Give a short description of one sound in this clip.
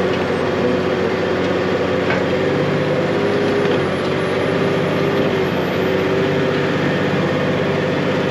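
A diesel tractor engine drones under load, pulling a cultivator, heard from inside the cab.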